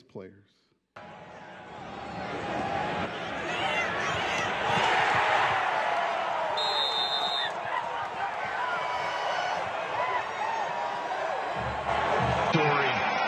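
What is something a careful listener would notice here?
A large stadium crowd cheers and roars.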